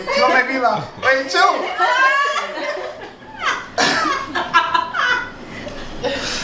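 Young women shout and laugh excitedly close by.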